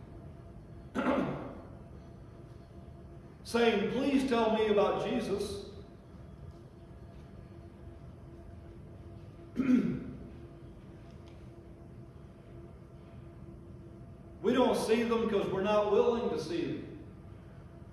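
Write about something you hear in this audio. An elderly man preaches with emphasis through a microphone, pausing between phrases.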